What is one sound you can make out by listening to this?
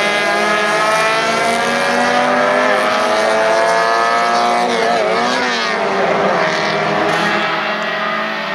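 Several race car engines roar and whine at high revs.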